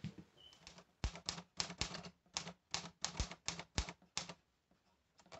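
A typewriter's keys clack in quick strokes.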